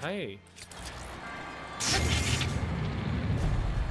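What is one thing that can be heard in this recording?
A sword swishes through the air with a zap.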